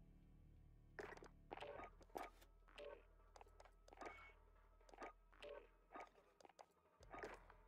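Short clicks tick quickly as menu items are browsed.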